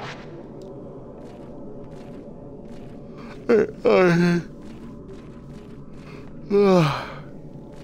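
Footsteps creak slowly on a wooden floor.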